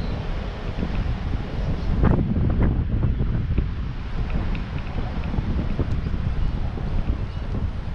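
Wind buffets loudly past a moving bicycle.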